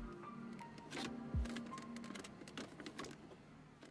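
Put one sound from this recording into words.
A gear lever clicks as it is shifted.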